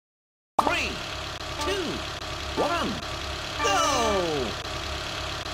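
Cartoonish falling-pitch tones chime for a race countdown.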